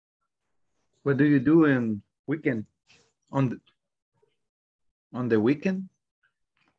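A young man speaks with animation over an online call, with pauses.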